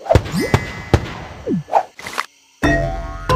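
Cheerful game sound effects chime and pop as a level is won.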